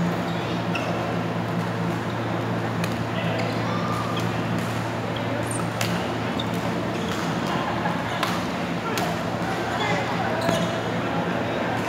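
Sneakers squeak on a court floor.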